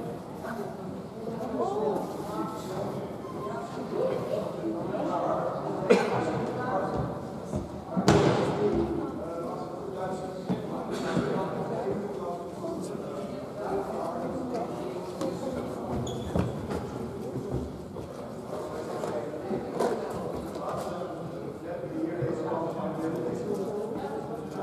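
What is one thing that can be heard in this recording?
A group of people talk and chatter in a large echoing hall.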